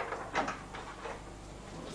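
A woman knocks on a wooden door.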